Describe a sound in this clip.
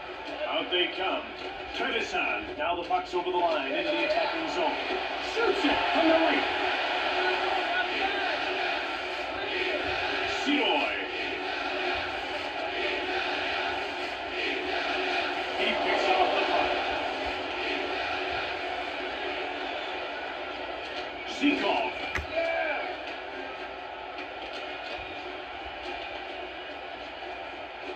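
Crowd noise from an ice hockey video game plays steadily through a television speaker.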